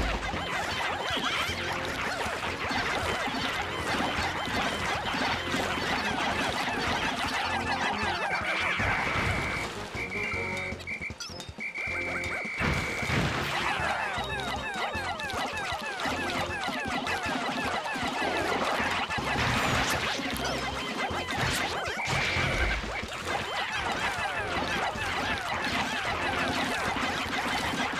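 Many small creatures chatter and squeak in high voices as they swarm and attack.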